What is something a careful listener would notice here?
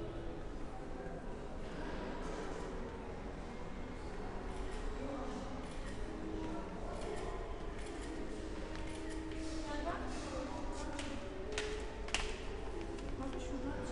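Voices of young women murmur nearby in an echoing stairwell.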